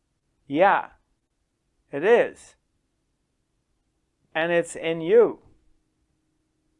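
A middle-aged man speaks expressively into a close microphone, in short phrases with pauses.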